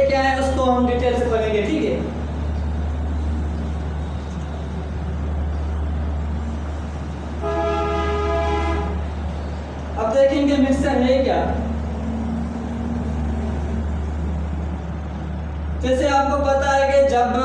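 A young man speaks clearly nearby.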